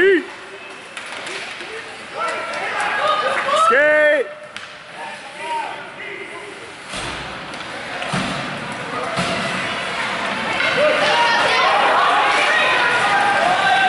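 Skates scrape and glide across ice.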